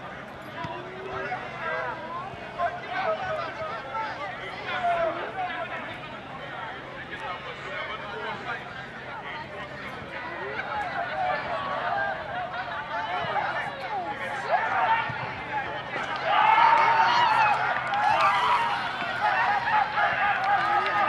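A crowd of spectators chatters and calls out outdoors, growing louder toward the end.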